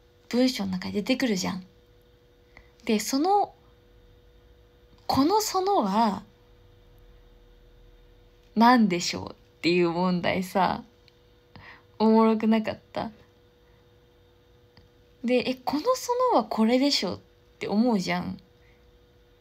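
A young woman talks close to a microphone in a relaxed, chatty way.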